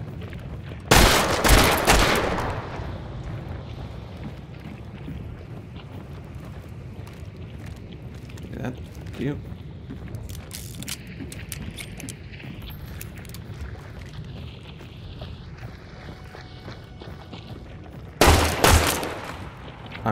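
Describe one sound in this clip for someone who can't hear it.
A revolver fires loudly with a ringing echo.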